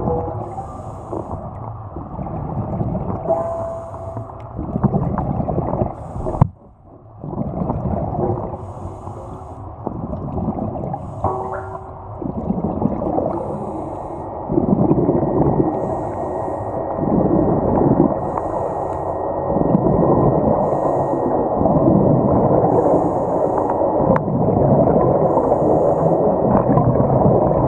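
A diver breathes through a regulator in slow, regular hissing breaths.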